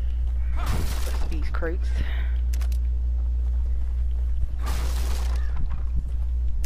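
Wooden crates smash and splinter.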